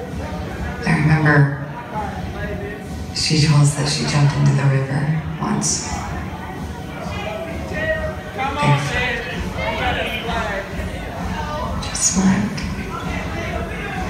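A woman speaks with expression, her voice carrying in a large hall.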